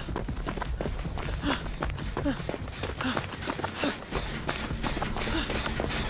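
Footsteps run through dry grass.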